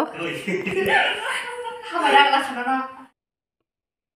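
A young woman laughs and talks close by.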